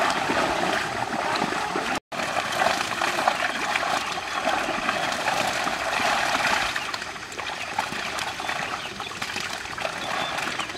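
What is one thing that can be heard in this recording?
Water sloshes as a net is dragged through shallow water.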